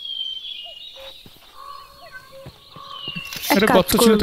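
Footsteps tread softly on grass.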